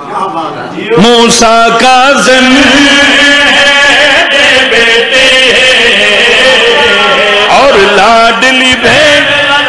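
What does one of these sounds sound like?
Several men sing together in chorus through microphones.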